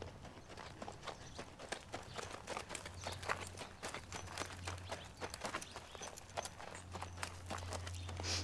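Tack jingles and creaks with each step of a horse.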